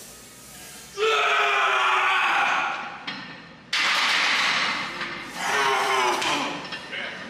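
A man shouts loud encouragement close by.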